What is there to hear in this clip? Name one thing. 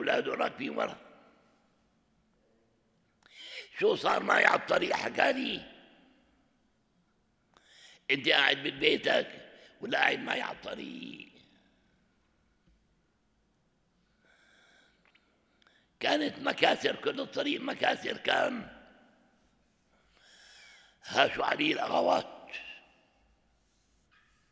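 An elderly man speaks with animation into a microphone, in bursts with pauses, in an echoing room.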